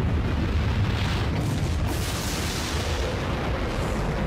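A fiery blast roars loudly.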